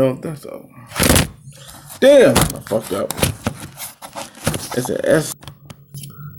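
Fabric rustles and bumps against a microphone.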